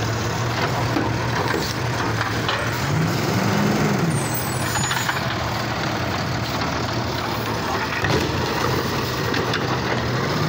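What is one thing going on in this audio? A garbage truck engine rumbles steadily close by.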